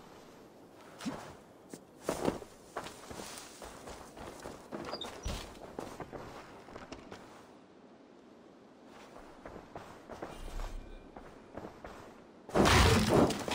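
Footsteps thud on dirt and wooden floors.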